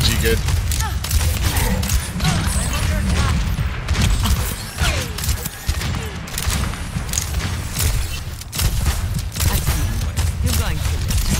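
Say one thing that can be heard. Explosions and impacts thud nearby.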